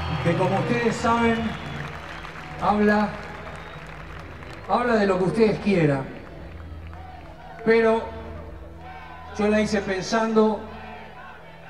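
A man sings into a microphone over loudspeakers, echoing in a large open arena.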